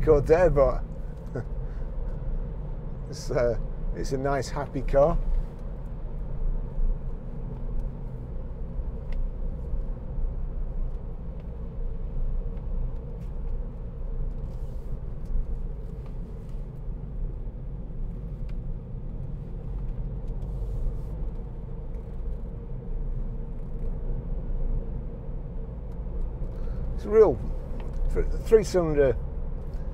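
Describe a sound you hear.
A car engine hums steadily with road rumble inside the car.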